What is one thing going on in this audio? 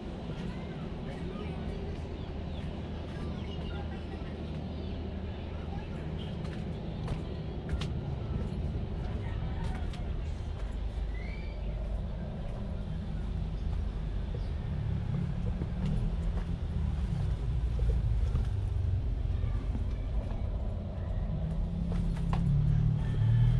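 Footsteps scuff slowly along a narrow concrete path.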